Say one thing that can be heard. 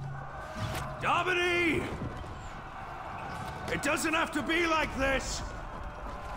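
A man speaks forcefully and close by.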